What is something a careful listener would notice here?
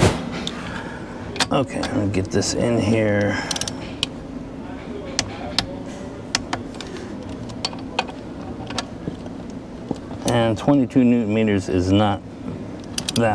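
Plastic parts click and knock as hands handle them.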